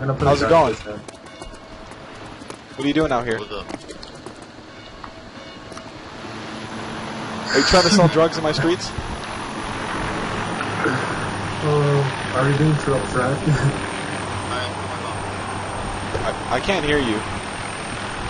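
A man talks with animation through a headset microphone, heard over an online call.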